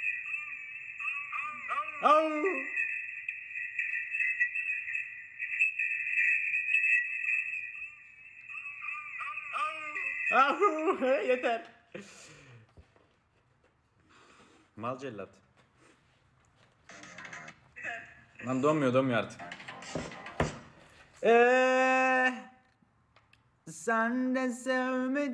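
A young man talks with animation close to a phone microphone.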